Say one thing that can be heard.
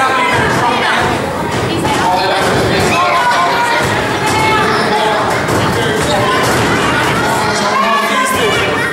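A crowd of spectators chatters and shouts loudly in an echoing hall.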